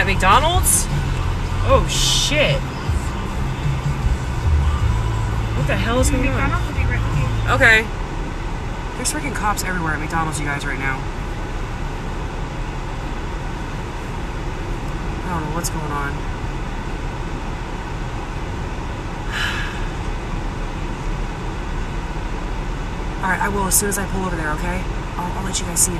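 A car engine rumbles low, heard from inside the car, then settles to a quieter idle.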